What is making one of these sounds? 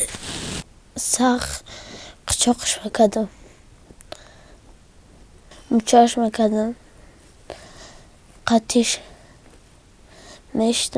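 A young boy speaks in a quiet, shaky voice close by.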